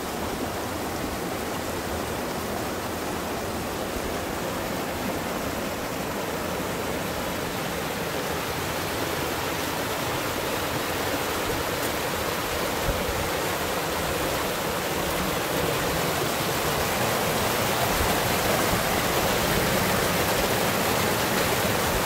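A stream rushes and splashes over rocks close by, growing louder.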